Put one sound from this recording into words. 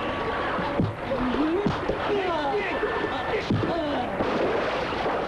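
A man wails and sobs loudly.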